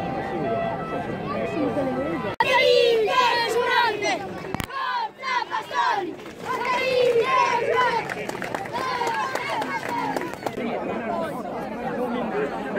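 A crowd of young people chants and shouts loudly outdoors.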